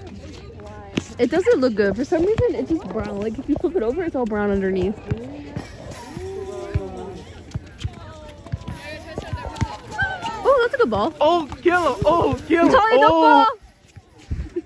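Young girls shout and call out to each other outdoors.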